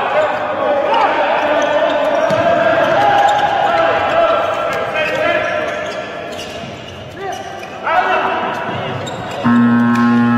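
A handball bounces on a hard court floor.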